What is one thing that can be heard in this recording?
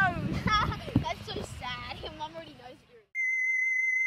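Children shout and laugh outdoors.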